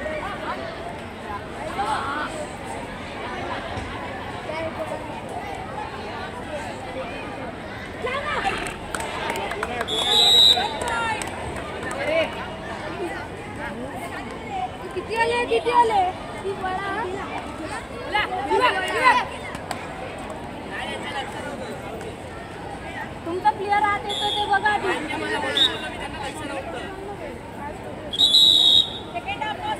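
A crowd of boys shouts and cheers outdoors.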